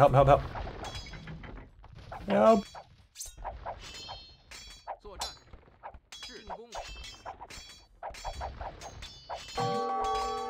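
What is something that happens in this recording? Swords clash and clang in a small fight.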